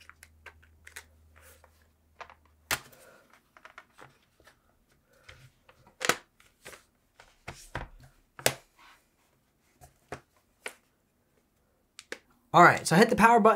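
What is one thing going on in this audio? A laptop's casing clicks and knocks as hands handle it.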